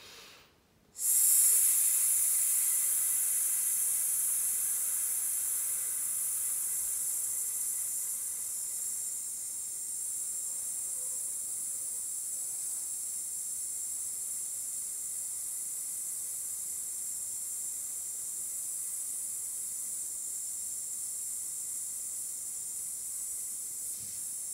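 A young woman hisses a long, steady breath through her teeth that slowly softens.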